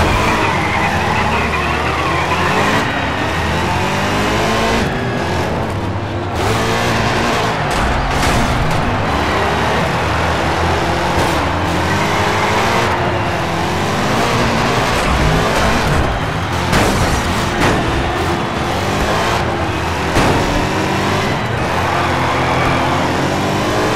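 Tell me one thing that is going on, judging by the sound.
Tyres screech as a car slides through turns.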